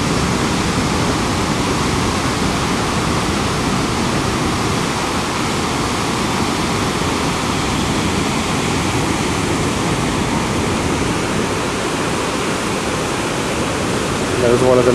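A large waterfall roars steadily, outdoors in wind.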